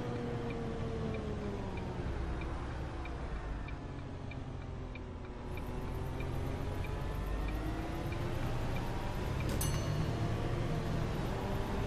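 A bus engine hums steadily, its pitch slowly falling and rising.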